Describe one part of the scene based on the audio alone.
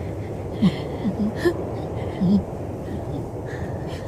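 A woman laughs softly.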